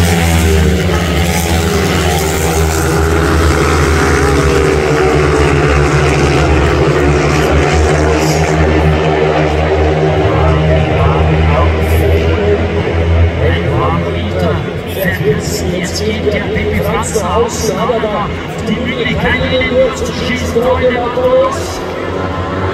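Motorcycle engines roar loudly and rise and fall in pitch.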